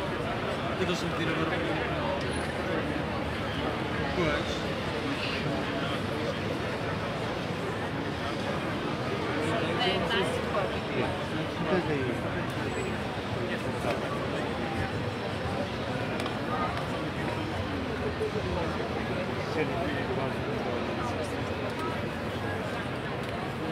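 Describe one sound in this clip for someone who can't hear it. A large crowd of men and women chants loudly outdoors.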